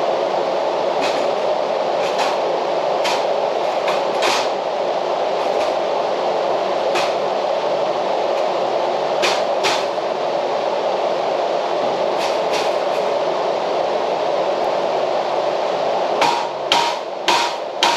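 A metal door frame clanks and rattles.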